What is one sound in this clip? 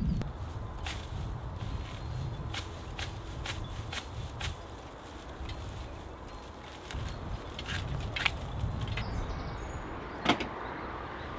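Shears snip through straw with sharp clicks.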